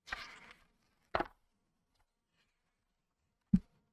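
Paper pages rustle as a page turns.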